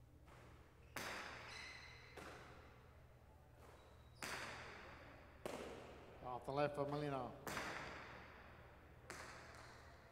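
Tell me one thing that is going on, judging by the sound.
A hard ball smacks against a wall with loud echoing bangs in a large hall.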